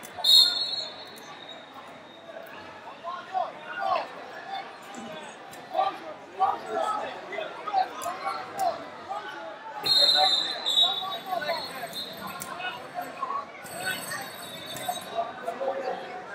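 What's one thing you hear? A referee's whistle blows in short shrill bursts.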